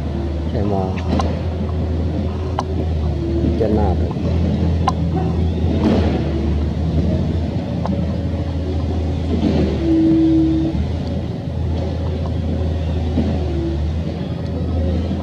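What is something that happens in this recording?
A monkey gnaws and scrapes at a coconut shell close by.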